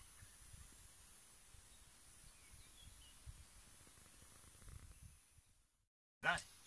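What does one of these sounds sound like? Bees buzz softly.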